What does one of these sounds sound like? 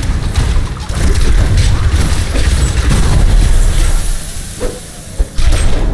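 Magic spells crash and whoosh in rapid bursts.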